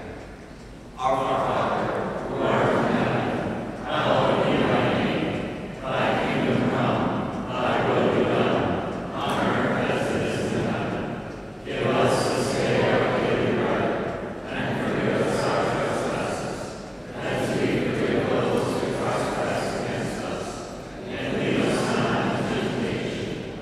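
A piano plays along.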